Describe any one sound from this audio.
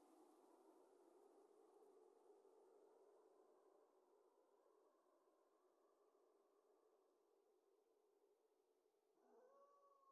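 A waterfall rushes nearby.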